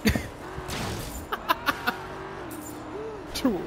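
A car crashes with a metallic bang.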